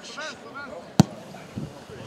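A ball is kicked hard with a sharp thud.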